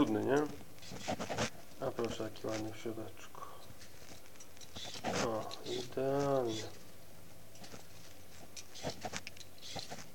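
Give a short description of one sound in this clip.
A vegetable peeler scrapes strips of skin off a sweet potato.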